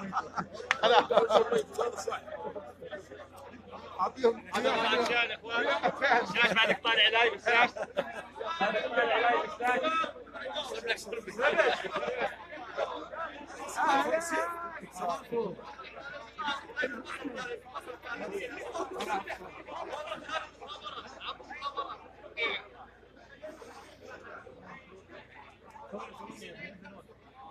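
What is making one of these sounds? Men shout and talk loudly over one another close by.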